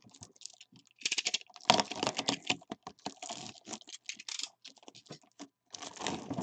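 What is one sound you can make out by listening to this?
A blade cuts through crinkling plastic wrap close by.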